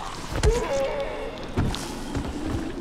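A heavy blow thuds into a body.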